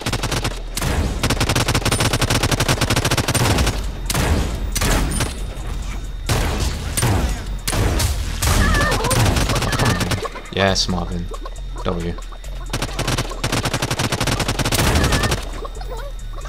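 A rifle fires in rapid bursts of gunshots.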